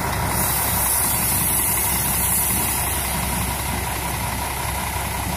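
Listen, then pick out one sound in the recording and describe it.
Tyres hiss on the road.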